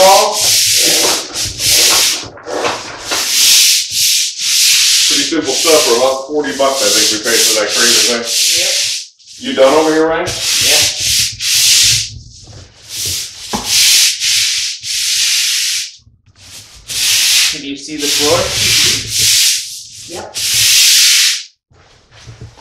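A stiff brush scrubs back and forth on a hard floor in bursts.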